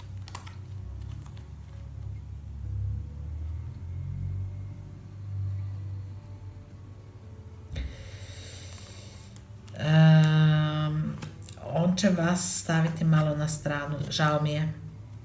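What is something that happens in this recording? Playing cards rustle softly as they are handled.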